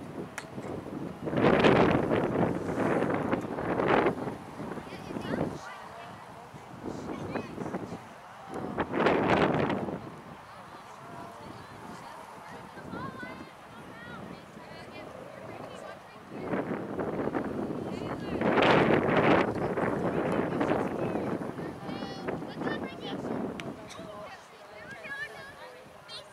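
Young women shout to each other across an open field in the distance.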